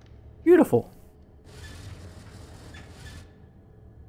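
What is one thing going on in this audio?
A wooden globe creaks and slides open.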